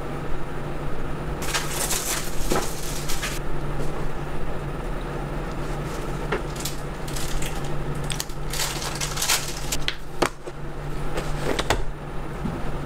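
Small plastic cosmetic cases click and tap as they are handled.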